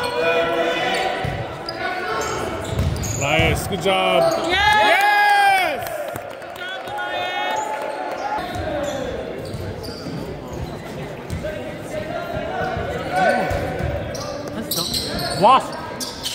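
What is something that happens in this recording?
A crowd of young players and spectators shouts and cheers in a large echoing hall.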